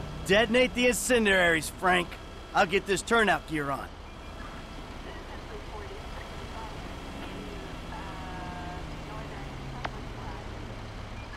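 A fire truck engine rumbles as it drives along a street.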